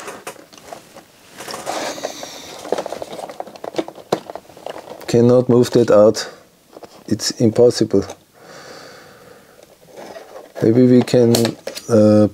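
Plastic parts click and rattle under handling.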